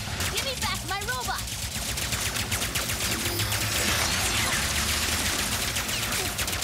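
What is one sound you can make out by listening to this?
Rapid gunfire rattles without pause.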